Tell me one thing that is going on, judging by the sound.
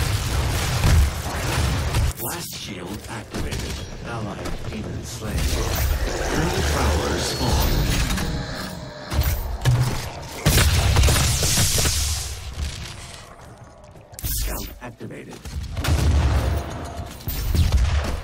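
Heavy gunfire blasts and booms loudly.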